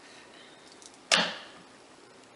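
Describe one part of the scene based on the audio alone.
A bar of soap thuds down onto a hard plastic tray.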